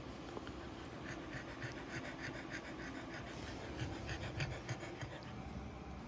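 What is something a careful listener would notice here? Newborn puppies squeak and suckle softly.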